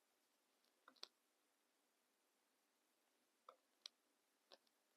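A small plastic part clicks.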